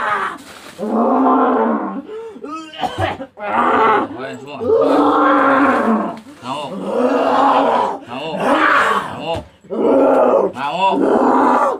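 A man chants loudly in long, drawn-out phrases close by.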